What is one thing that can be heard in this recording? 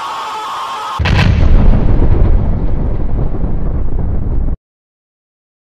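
A huge explosion booms and rumbles deeply.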